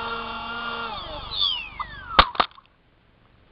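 Small drone propellers wind down and fall silent.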